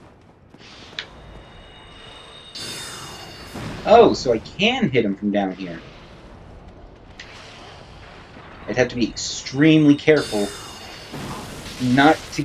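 Magic spells crackle and hum.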